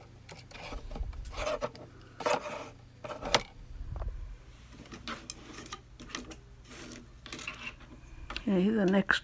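Thin wire scrapes and taps against a hard surface close by.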